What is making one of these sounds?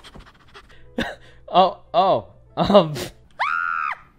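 A young woman exclaims loudly and excitedly close to a microphone.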